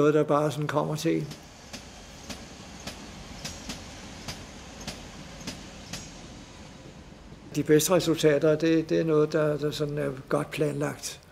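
An elderly man speaks calmly and thoughtfully, close to a microphone.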